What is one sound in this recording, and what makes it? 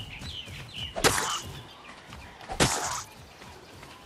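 A spear strikes flesh with sharp thuds.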